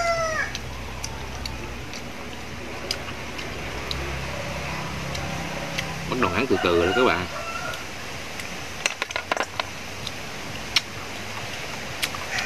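Snail shells clink and click against each other.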